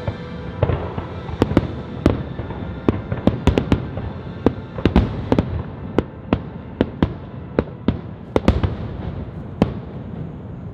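Fireworks burst with sharp, echoing bangs far off.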